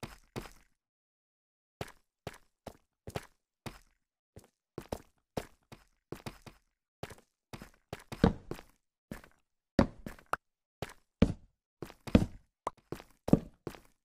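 Footsteps tap on stone at a brisk walking pace.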